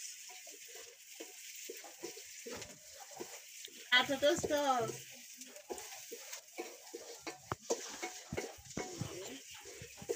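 A metal spoon scrapes a pot.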